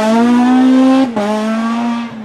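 A rally car's engine briefly cuts out at a gear change.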